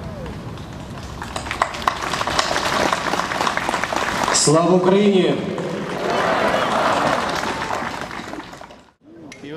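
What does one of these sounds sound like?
People clap their hands in applause outdoors.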